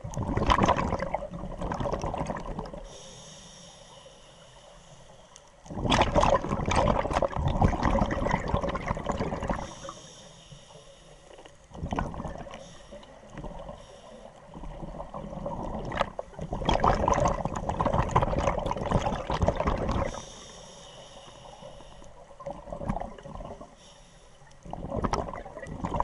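A scuba diver's regulator bubbles loudly in bursts of exhaled air, heard close underwater.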